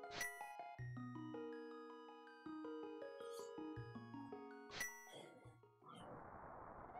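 A chiptune melody plays from a video game.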